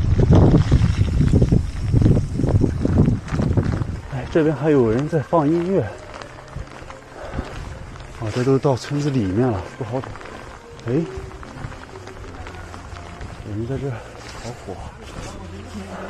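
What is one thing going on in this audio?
Bicycle tyres hiss on a wet road.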